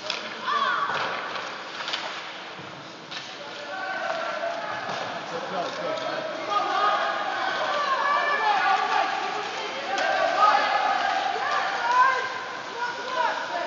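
Children shout and cheer nearby in a large echoing rink.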